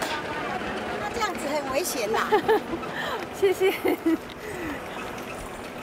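A woman speaks warmly up close.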